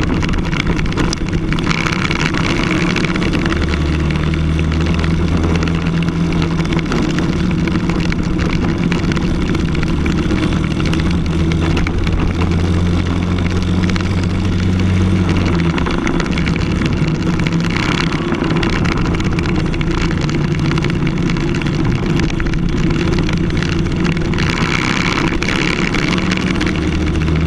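A kart engine roars close by, rising and falling in pitch with speed.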